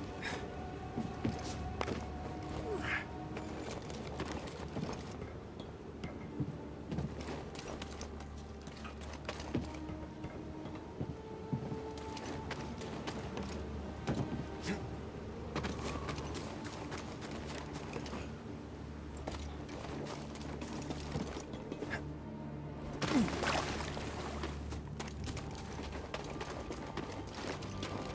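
Footsteps thud and clank on metal and stone.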